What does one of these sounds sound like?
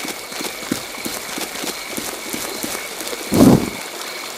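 Footsteps rustle through leaves and grass.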